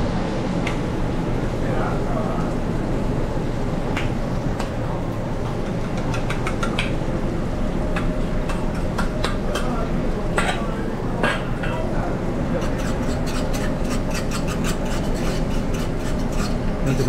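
An exhaust fan roars steadily.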